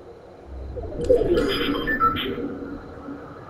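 A bright electronic alert chime sounds once.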